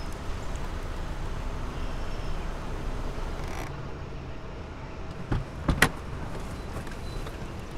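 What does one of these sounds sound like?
A car rolls slowly up on gravel and stops.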